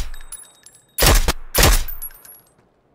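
A rifle fires two loud, sharp shots.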